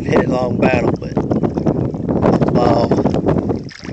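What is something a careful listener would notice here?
A large fish splashes and thrashes at the water's surface close by.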